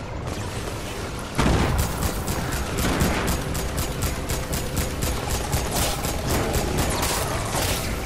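Game menu sounds click.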